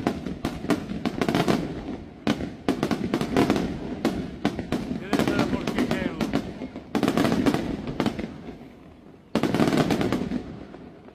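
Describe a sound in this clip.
Fireworks burst with sharp bangs that echo outdoors.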